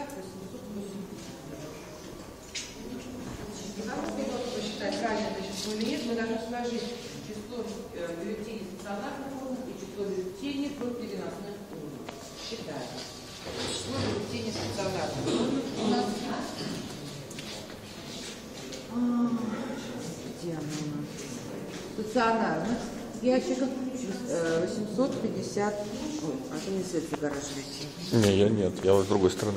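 Several adults talk at once nearby in a small room.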